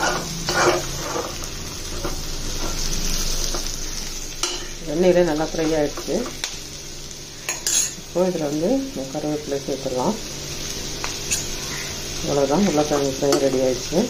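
Food sizzles gently in a hot pan.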